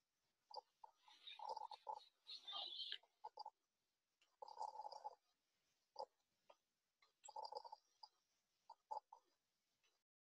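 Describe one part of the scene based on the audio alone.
A middle-aged woman speaks calmly into a computer microphone, heard close up.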